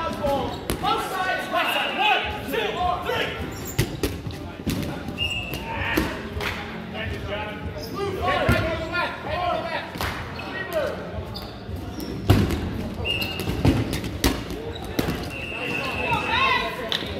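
Balls thud and bounce on a wooden floor in a large echoing gym.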